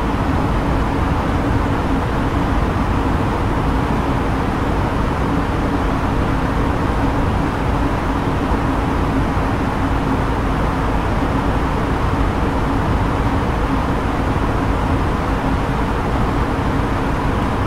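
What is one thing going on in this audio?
Airflow and jet engines roar steadily inside an airliner cockpit in flight.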